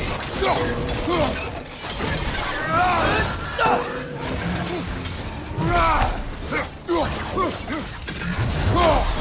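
A creature screeches and snarls.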